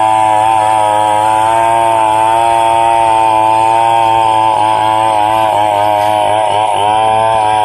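A chainsaw engine runs loudly at high speed, its pitch dipping as the blade bites into wood.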